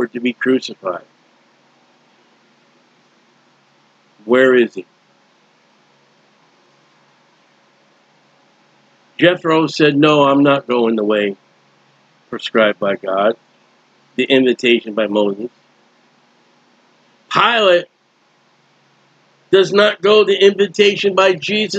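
A middle-aged man speaks calmly into a microphone, in bursts with pauses.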